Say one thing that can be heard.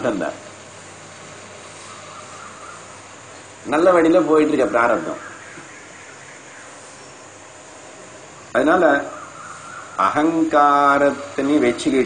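An elderly man speaks with animation into a clip-on microphone, close by, in short bursts with pauses.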